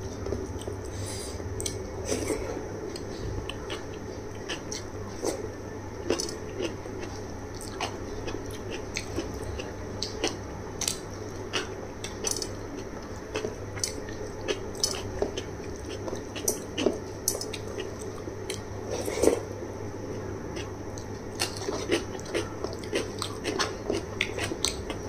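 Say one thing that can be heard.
A woman chews and smacks her lips close up.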